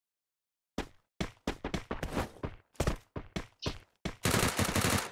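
Footsteps tap quickly on a wooden floor.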